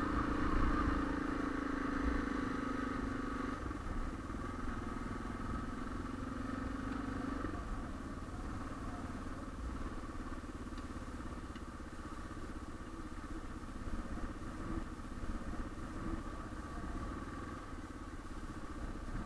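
A single-cylinder dual-sport motorcycle engine pulls along at riding speed.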